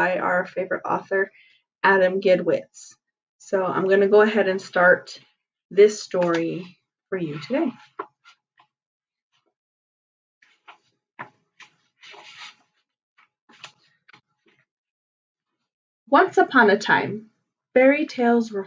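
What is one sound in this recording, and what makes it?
A woman speaks calmly and closely, pausing now and then.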